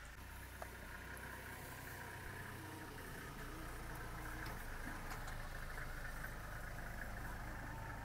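An elephant walks through tall grass, its feet swishing softly.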